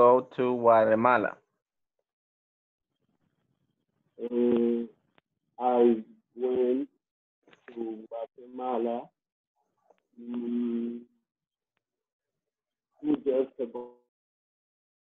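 A young man talks animatedly over an online call.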